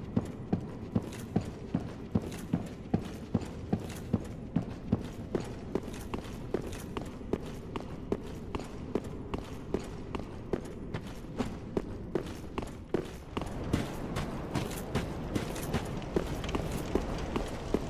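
Heavy armored footsteps run at a quick, steady pace.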